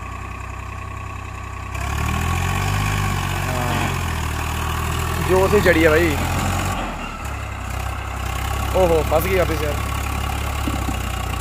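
A tractor engine rumbles and chugs steadily.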